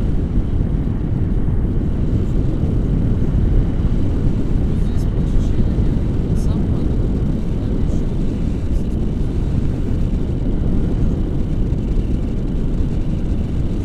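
Strong wind rushes and buffets loudly against a microphone outdoors.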